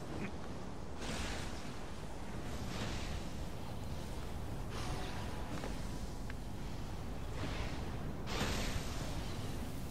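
Hands and feet scrape and thump on stone as a climber pulls upward.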